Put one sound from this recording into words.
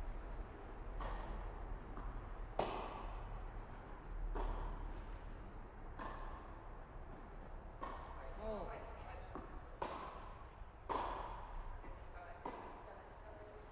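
Tennis balls pop off rackets with echoing hits in a large hall.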